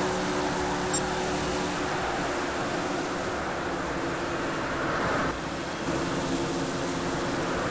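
A stock car's V8 engine roars at full throttle in a racing video game.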